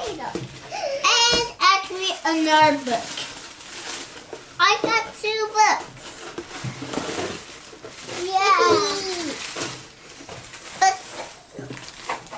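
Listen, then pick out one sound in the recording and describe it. A little girl squeals and chatters nearby.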